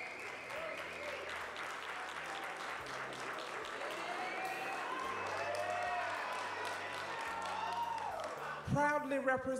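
An audience claps and cheers steadily in a large hall.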